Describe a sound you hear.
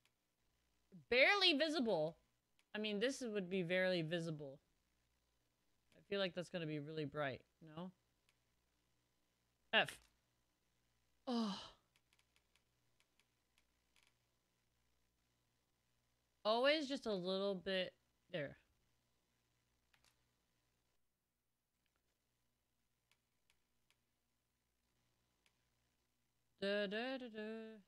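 A young woman talks animatedly into a close microphone, in short bursts.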